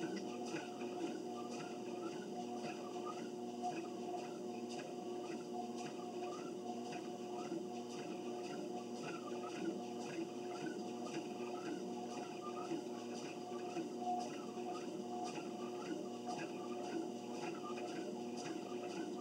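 A treadmill motor hums steadily.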